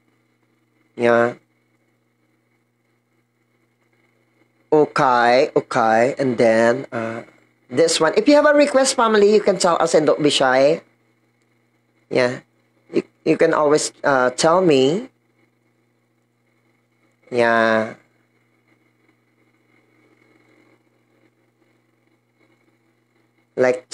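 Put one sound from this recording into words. A young man talks with animation, close to a microphone, in short bursts with pauses.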